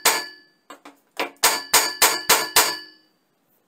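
A hammer strikes wooden slats in quick, ringing blows.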